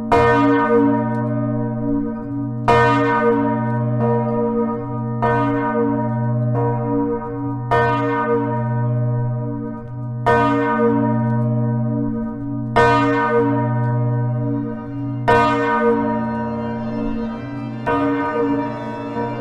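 A large church bell tolls slowly, each deep stroke ringing on.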